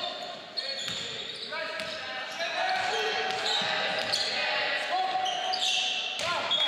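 A basketball bounces with dull thuds on the court.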